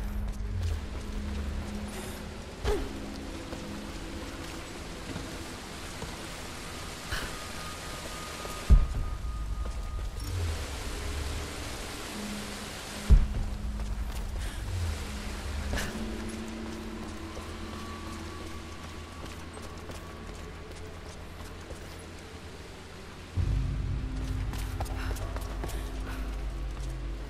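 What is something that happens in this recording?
Footsteps crunch on rocky ground.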